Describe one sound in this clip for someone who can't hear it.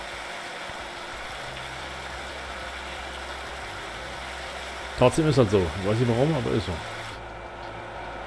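A pressure washer sprays with a steady hiss.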